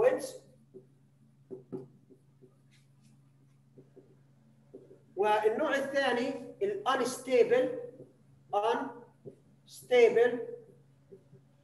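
A man speaks calmly, as if lecturing.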